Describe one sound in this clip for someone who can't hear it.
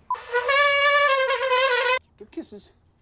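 A trumpet blares loudly close by.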